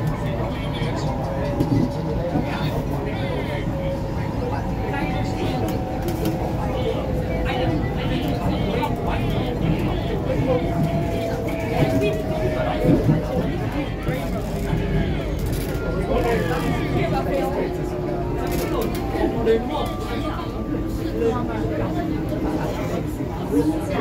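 Train wheels screech faintly on the rails.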